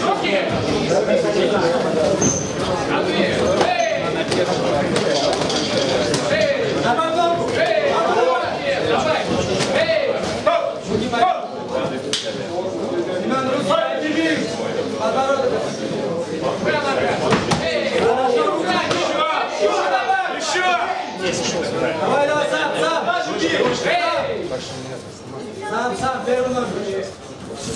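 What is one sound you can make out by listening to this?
A crowd of spectators chatters and shouts throughout.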